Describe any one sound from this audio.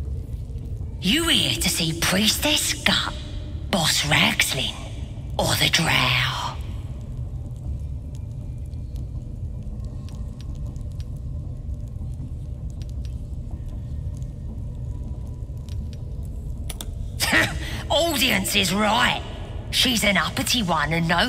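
A creature speaks in a rasping, gravelly voice.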